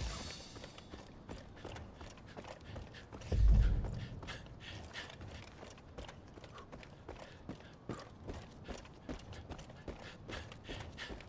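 Footsteps crunch steadily across gravel and pavement.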